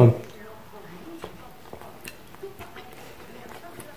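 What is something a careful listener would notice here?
A man chews food with faint wet sounds.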